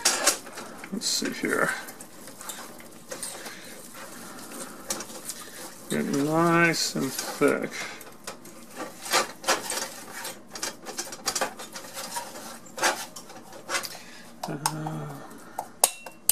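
A whisk scrapes and clinks against a metal pot.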